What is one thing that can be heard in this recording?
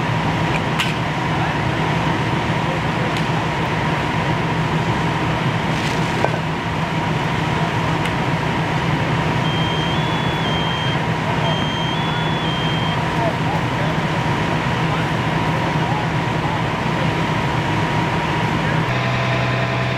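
Water sprays hard from a hose with a steady rushing hiss.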